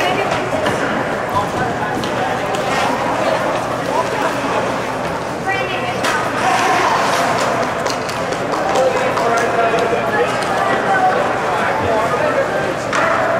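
A crowd of spectators murmurs and chatters in a large echoing rink.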